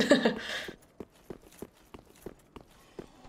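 Armored footsteps clank steadily on stone.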